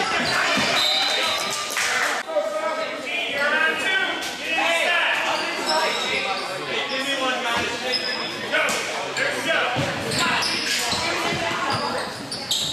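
Young players and spectators shout and call out in an echoing gym.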